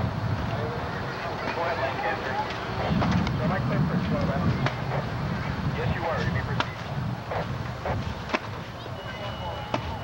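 A crowd of men and women chatters at a distance outdoors.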